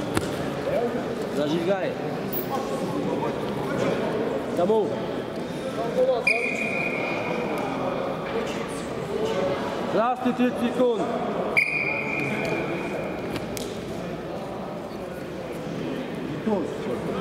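Feet shuffle and thump on a wrestling mat.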